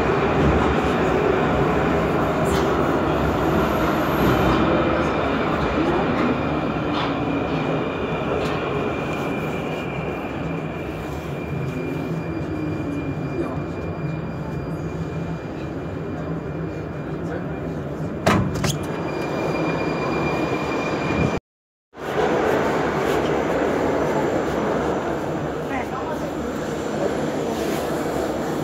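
A metro train hums steadily in an echoing underground station.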